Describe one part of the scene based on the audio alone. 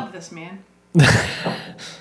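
Glasses clink together in a toast.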